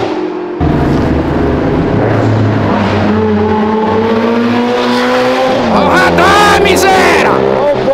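A motorcycle engine rumbles close by.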